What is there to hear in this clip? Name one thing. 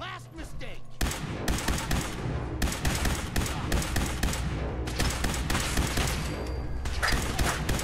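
Rapid gunshots crack one after another.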